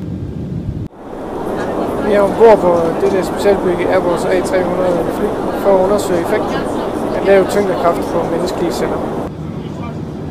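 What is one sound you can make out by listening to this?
A middle-aged man speaks calmly into a phone's earphone microphone.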